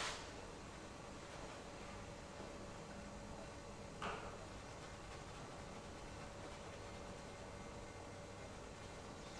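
A brush softly strokes paint onto canvas.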